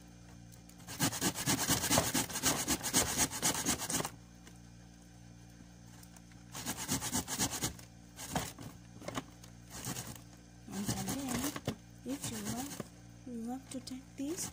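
Cloth rustles and scrapes close by.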